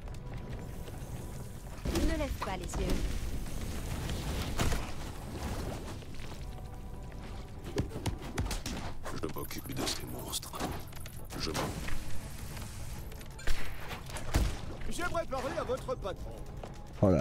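Cartoonish blows, zaps and blasts clatter in a hectic fight.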